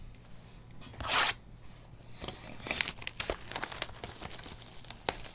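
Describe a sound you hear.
Plastic wrapping crinkles and tears as hands unwrap a box.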